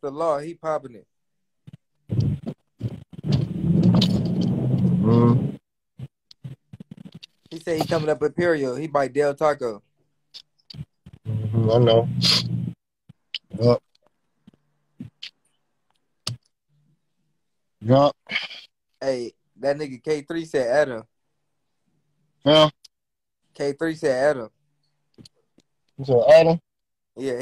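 A man talks with animation, close and heard through a phone.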